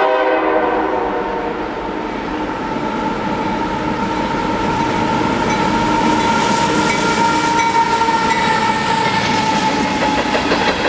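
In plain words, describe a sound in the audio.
A diesel locomotive rumbles past close by.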